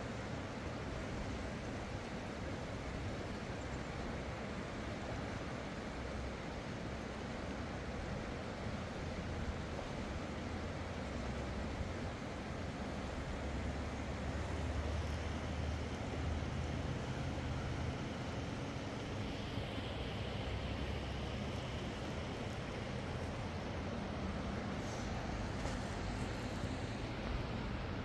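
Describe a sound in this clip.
A shallow, fast-flowing river rushes over rocks.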